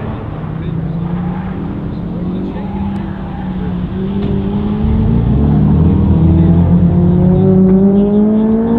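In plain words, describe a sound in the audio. A car engine revs and roars in the distance, rising in pitch as it accelerates.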